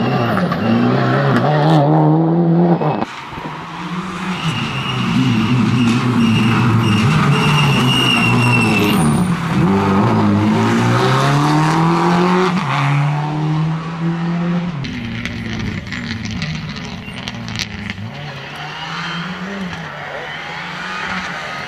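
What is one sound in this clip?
A turbocharged flat-four Subaru Impreza rally car accelerates at full throttle, its engine revving up and down through gear changes.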